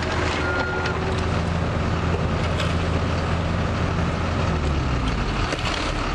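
Rakes scrape across asphalt.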